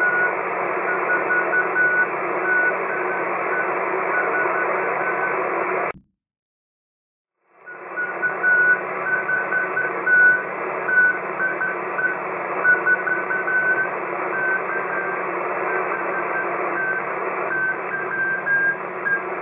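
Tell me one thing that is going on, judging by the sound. Morse code beeps faintly through radio static.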